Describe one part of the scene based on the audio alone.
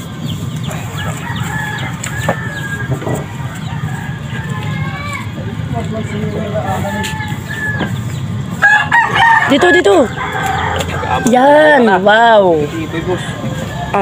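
A chicken clucks nearby.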